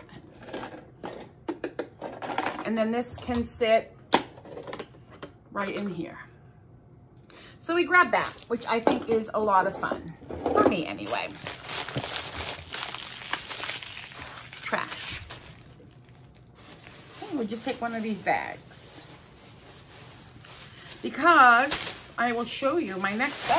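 A middle-aged woman talks with animation, close to a microphone.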